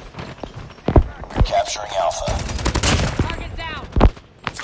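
Gunshots fire in a rapid burst.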